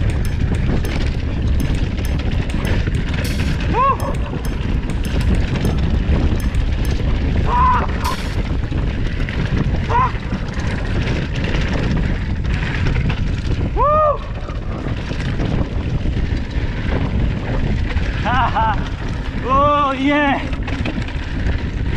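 Bicycle tyres rumble over a bumpy dirt trail.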